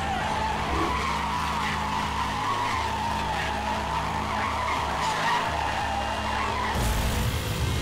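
Tyres screech loudly as a car drifts through a bend.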